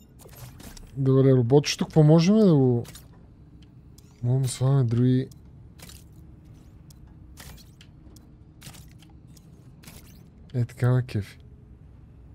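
A man speaks with animation into a close microphone, in short bursts.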